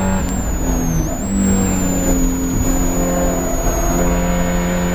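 A Spec Miata's engine pitch drops as the driver shifts gear.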